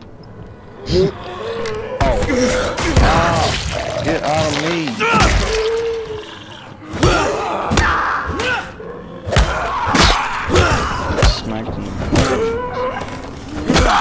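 A metal pipe thuds hard against bodies again and again.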